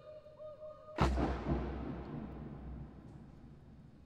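A marching band answers with one sharp shout and stamp that rings out in a long echo.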